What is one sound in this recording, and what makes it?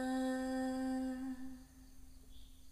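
A ukulele chord rings out and slowly fades.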